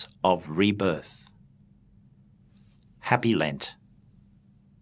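An older man speaks calmly and clearly into a close microphone.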